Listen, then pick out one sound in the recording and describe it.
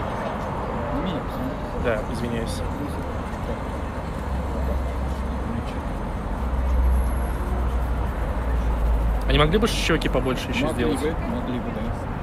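A man and a woman passing by talk briefly close by.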